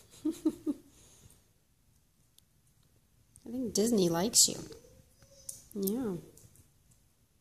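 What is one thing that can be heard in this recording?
A kitten meows loudly a few times.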